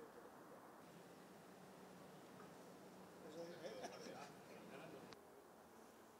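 Men talk quietly nearby, outdoors.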